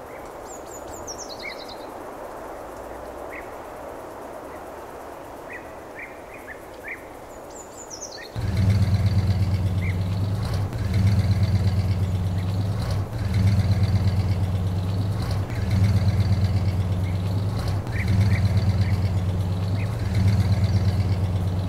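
Toy wheels and discs scrape softly through sand.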